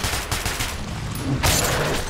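A monster snarls and roars.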